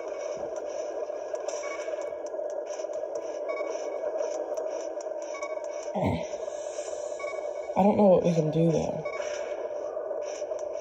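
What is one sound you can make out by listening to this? Upbeat electronic game music plays from a small handheld speaker.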